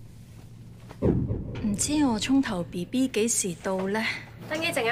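A woman talks calmly to the listener close by.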